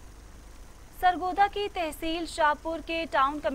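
A young woman reads out the news calmly through a microphone.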